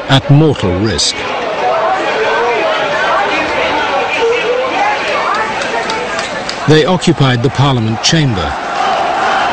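A large crowd chants loudly in unison.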